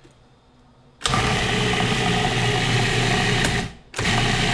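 A food processor whirs loudly, stops briefly and starts again.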